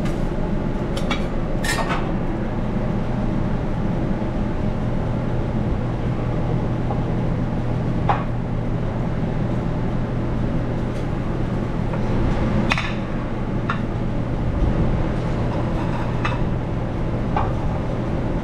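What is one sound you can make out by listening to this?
Plates clink against each other as they are stacked.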